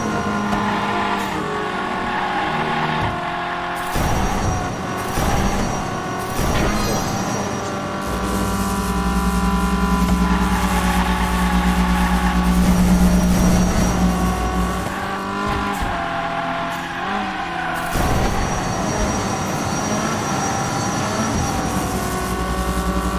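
A racing car's engine hums and revs steadily.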